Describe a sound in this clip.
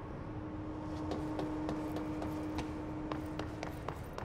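Quick footsteps run across a hard floor in a large echoing hall.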